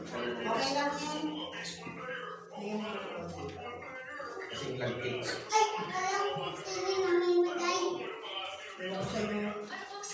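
Plates and serving spoons clink on a table.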